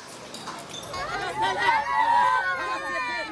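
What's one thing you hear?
Women wail and cry loudly.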